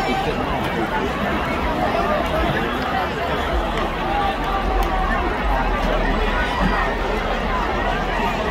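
A large crowd chatters and murmurs steadily outdoors.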